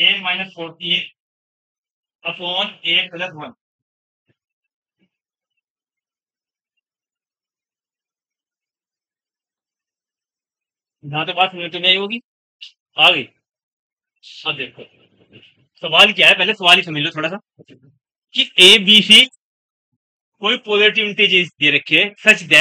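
A young man speaks calmly and explains, close by, with long pauses.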